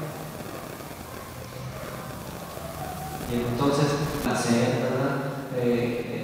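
A man speaks calmly into a microphone, heard through a loudspeaker in an echoing hall.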